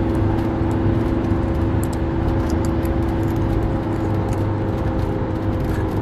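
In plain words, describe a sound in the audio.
A young man crunches on a crisp snack close by.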